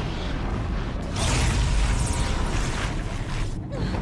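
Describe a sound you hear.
A beam weapon hums and crackles as it fires.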